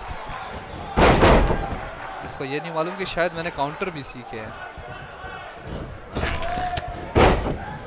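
Heavy bodies thud onto a ring mat.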